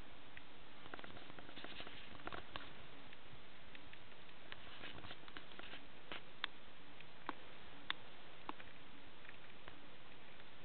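A small rodent rustles through dry wood shavings.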